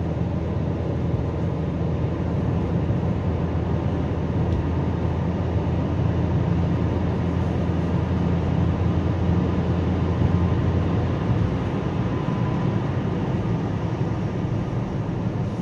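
A car engine hums steadily from inside.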